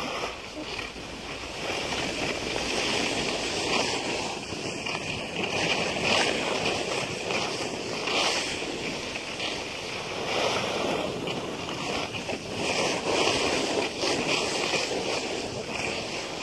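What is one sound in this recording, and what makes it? Skis hiss and scrape steadily over packed snow.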